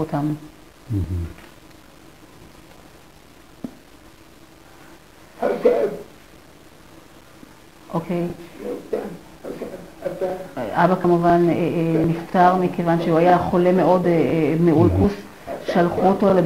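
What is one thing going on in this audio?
An elderly man speaks calmly and hesitantly, close by.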